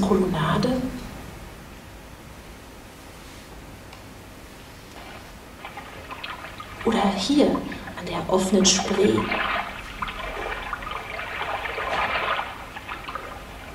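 A woman speaks from a distance.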